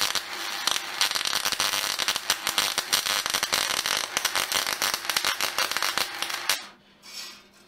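A welding arc crackles and sizzles loudly.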